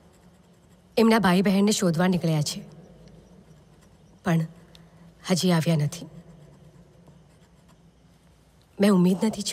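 A young woman speaks softly and sorrowfully, close by, in short bursts.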